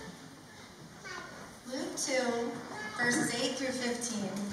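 A young girl speaks into a microphone.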